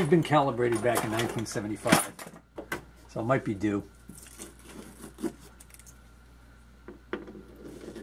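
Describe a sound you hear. A screwdriver scrapes and clicks as screws are turned out of a metal case.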